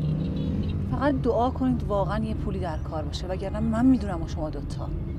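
A young woman talks quietly inside a car.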